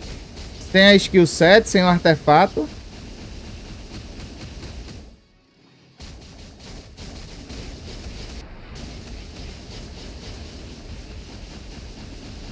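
Game battle effects whoosh and crash in quick bursts.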